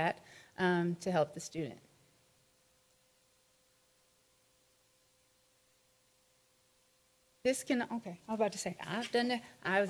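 A woman speaks calmly into a microphone, heard up close.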